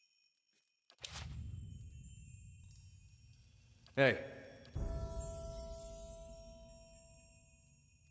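A bright game chime rings out and slowly fades.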